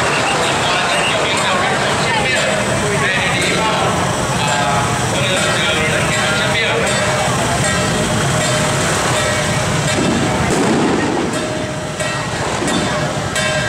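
Motorbike engines idle nearby.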